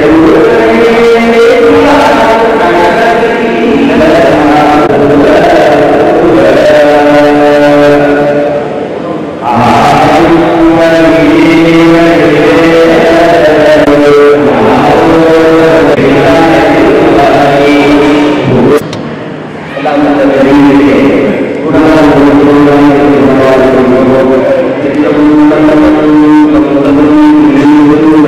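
A man chants in a steady, sung voice.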